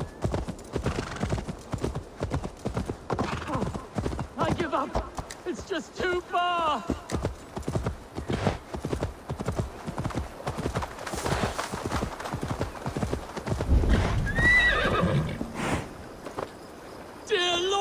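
A horse's hooves thud steadily on grass and dirt.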